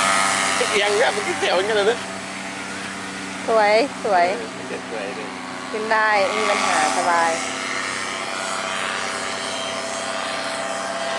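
A paramotor engine drones overhead in the distance.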